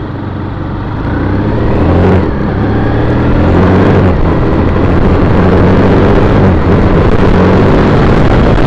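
A car engine hums loudly while driving.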